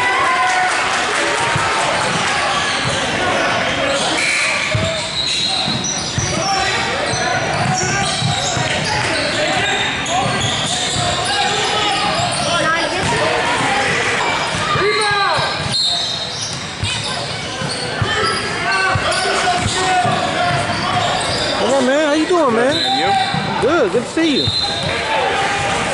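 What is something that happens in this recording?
A crowd of voices chatters and shouts in a large echoing gym.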